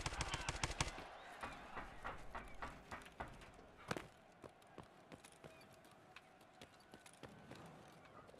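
Footsteps run quickly over hard ground and metal.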